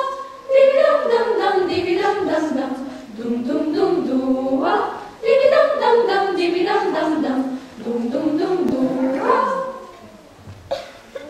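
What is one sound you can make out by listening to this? A choir of young voices sings together.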